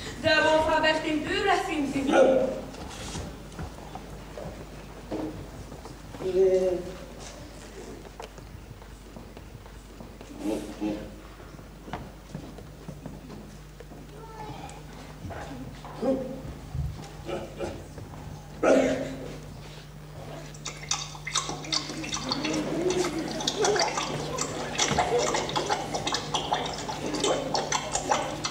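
Actors speak with animated voices on a stage, heard through a distant microphone.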